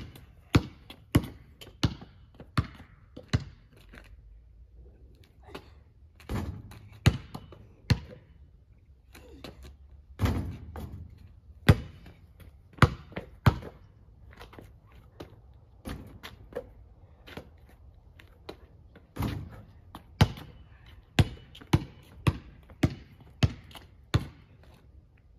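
A basketball bounces repeatedly on pavement outdoors.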